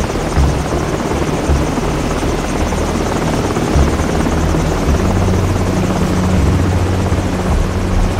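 A helicopter's rotor thumps and drones overhead.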